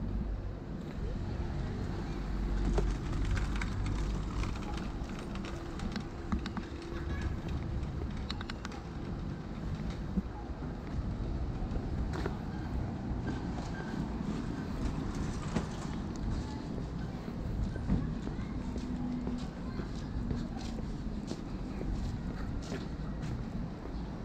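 Footsteps walk steadily on pavement outdoors.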